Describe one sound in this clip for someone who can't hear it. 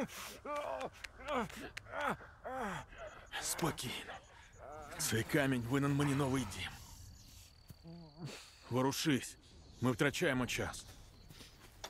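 A man speaks in a strained voice close by.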